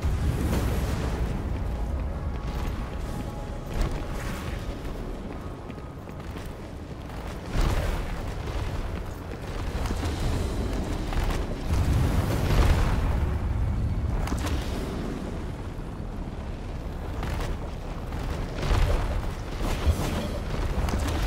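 Footsteps tread on soft, squelching ground.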